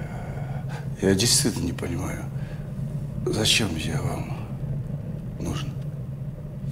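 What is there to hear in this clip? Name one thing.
A middle-aged man speaks tensely in short bursts, close by.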